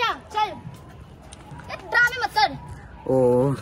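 A young woman speaks loudly and angrily up close.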